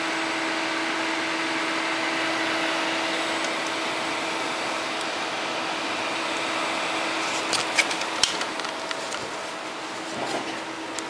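Computer fans whir with a steady hum close by.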